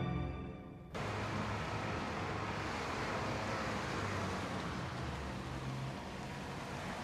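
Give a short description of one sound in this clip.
A car engine hums as a car rolls slowly closer.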